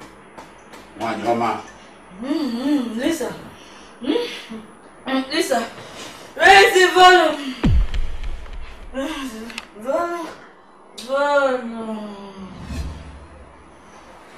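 A young woman talks drowsily, her voice rising and falling.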